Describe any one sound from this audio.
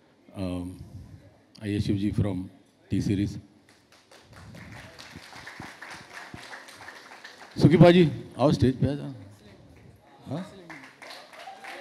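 A middle-aged man speaks with animation into a microphone over loudspeakers.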